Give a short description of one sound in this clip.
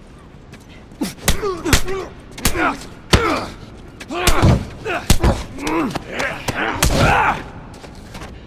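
Heavy punches thud in a brawl.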